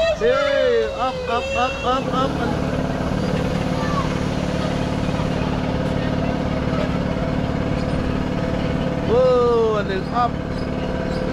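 Children squeal and shriek with excitement.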